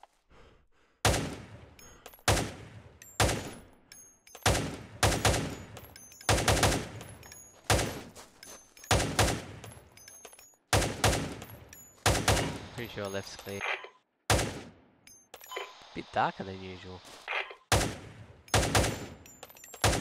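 Rifle shots boom one after another, each followed by a rolling echo.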